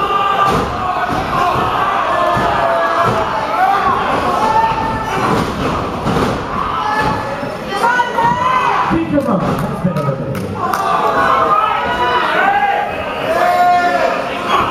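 A crowd of men and women shouts and cheers in a large echoing hall.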